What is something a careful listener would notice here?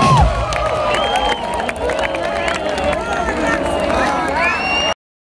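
Live music plays loudly from a stage.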